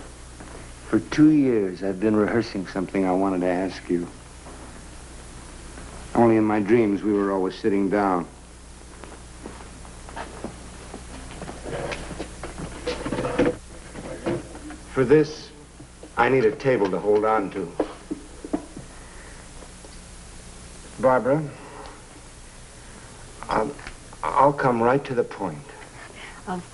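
A man talks warmly and softly, close by.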